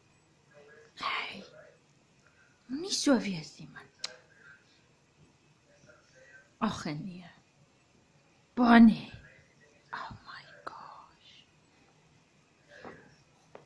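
A small puppy growls playfully in short bursts.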